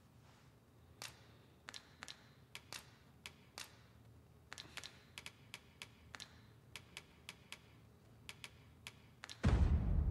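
Menu selection clicks tick quickly, one after another.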